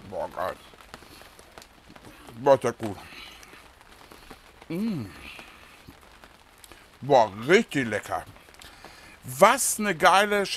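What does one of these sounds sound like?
A man speaks with animation, close to a microphone, in bursts with pauses.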